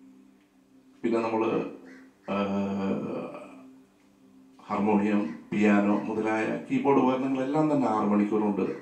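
A middle-aged man sings into a microphone.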